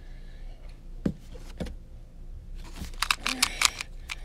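A small puzzle cube clicks and clatters as its layers are twisted quickly.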